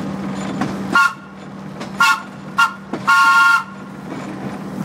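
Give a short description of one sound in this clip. A train horn blows several short and long blasts.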